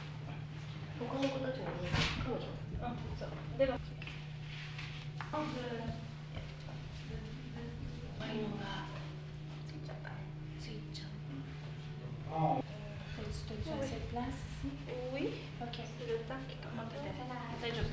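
Young women talk quietly nearby.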